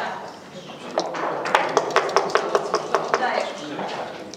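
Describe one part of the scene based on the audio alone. Dice rattle quickly inside a cup.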